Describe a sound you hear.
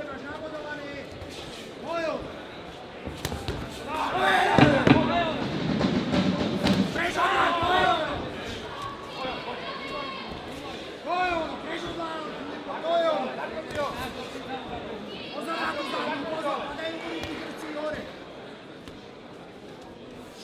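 Boxing gloves thud against a body and head in quick blows.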